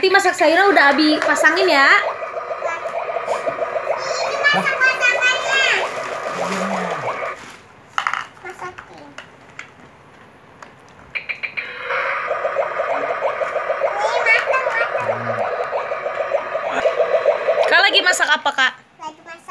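A young child babbles and squeals close by.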